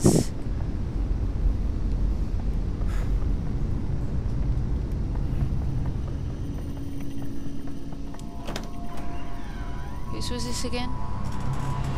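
A young woman talks into a microphone, close and casual.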